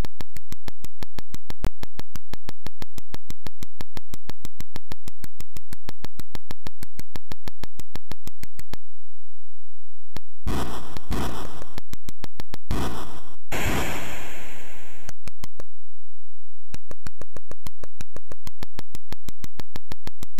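Rapid electronic clicks tick steadily as a game character digs through earth.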